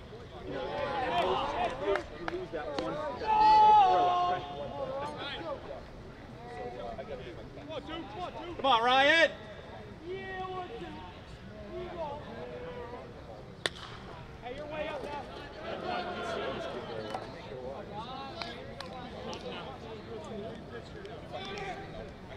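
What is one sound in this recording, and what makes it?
Young men shout and cheer from the sidelines outdoors.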